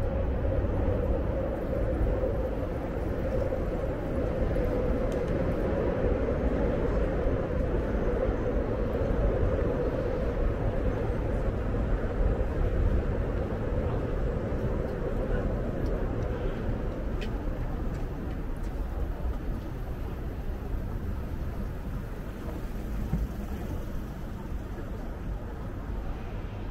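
Low traffic rumble and wind fill an outdoor street.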